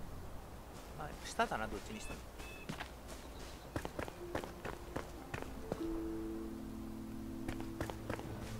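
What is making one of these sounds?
Footsteps patter quickly over grass and then stone.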